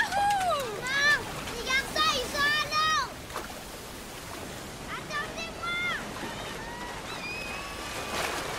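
A young girl calls out loudly outdoors.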